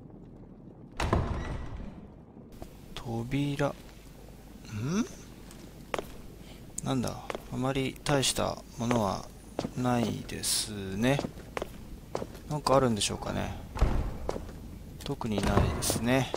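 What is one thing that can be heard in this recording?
A heavy wooden door creaks open and shut.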